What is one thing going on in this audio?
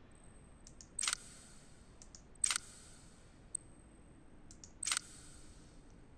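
Menu clicks tick sharply and briefly.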